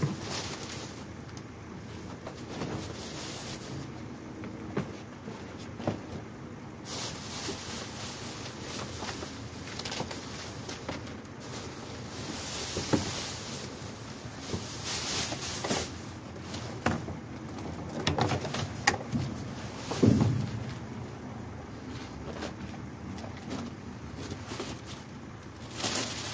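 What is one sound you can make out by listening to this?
Plastic bags rustle and crinkle as a man rummages through them.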